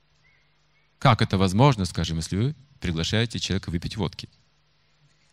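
An older man speaks with animation into a microphone, heard through a loudspeaker.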